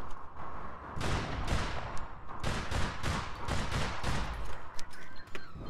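Gunshots fire rapidly in quick bursts.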